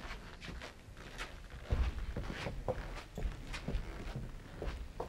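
An elderly man speaks loudly and theatrically on a stage.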